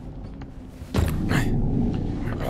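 A body thuds heavily onto a hard floor.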